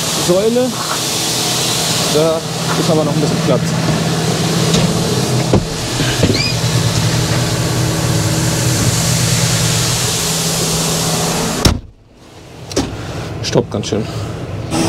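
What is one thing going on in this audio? Grain pours and hisses out of a tipping trailer.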